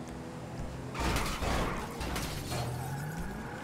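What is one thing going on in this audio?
A car crashes and scrapes through a hedge.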